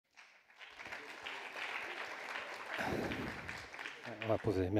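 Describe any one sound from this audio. A crowd applauds in a large hall.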